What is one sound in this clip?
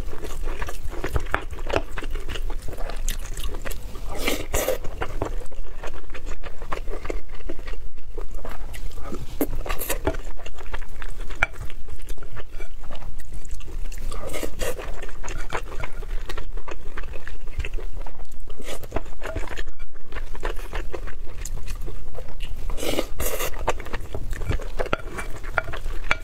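A young woman chews and slurps food close to a microphone.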